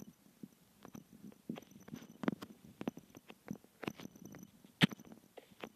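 Game blocks are placed with short soft knocks.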